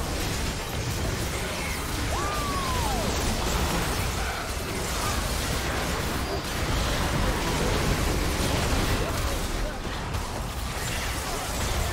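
Magic blasts crackle and whoosh in a busy game battle.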